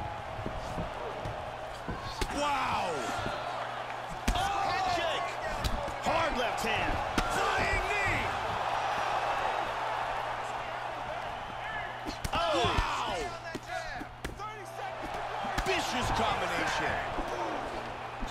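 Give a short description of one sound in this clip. Punches and kicks land with sharp thuds now and then.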